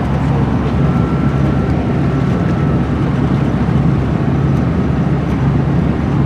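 Tyres roar steadily on asphalt.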